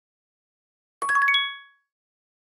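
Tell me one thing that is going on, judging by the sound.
Coins jingle together.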